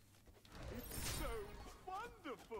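Magic spells whoosh and crackle in a video game.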